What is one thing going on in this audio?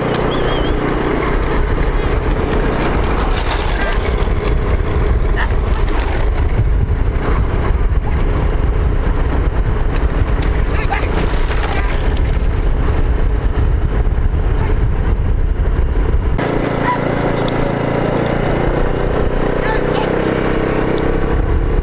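Bullock carts rattle and rumble along a road.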